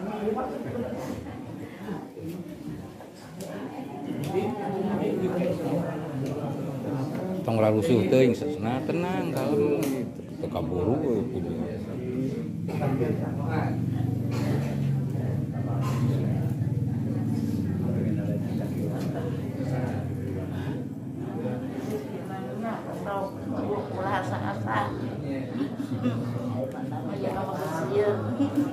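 Elderly women weep and sob close by.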